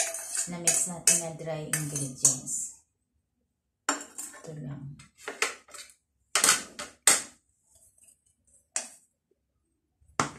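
A metal sieve taps against a bowl as flour is sifted.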